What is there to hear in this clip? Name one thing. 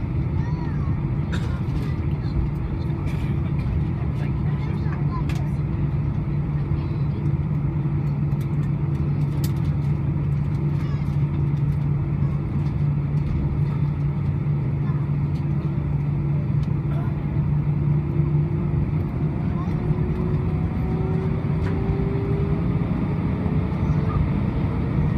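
Wheels rumble and thump over the runway.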